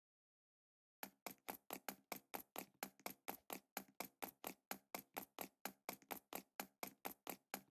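Footsteps thud quickly and steadily on a stone floor.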